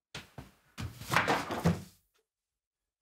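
Bedding rustles as a woman moves.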